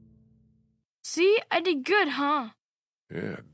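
A young boy speaks proudly, close by.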